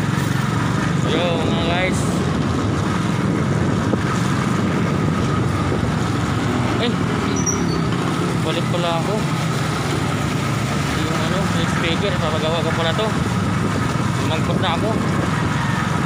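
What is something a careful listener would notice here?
A young man speaks up close, muffled.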